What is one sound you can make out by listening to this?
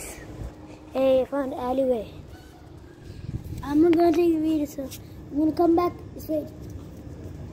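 A young boy speaks excitedly close to a microphone.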